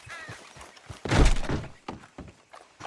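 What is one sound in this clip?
A door bangs shut.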